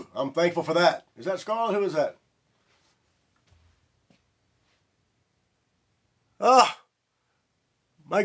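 A middle-aged man speaks close to a microphone with animation.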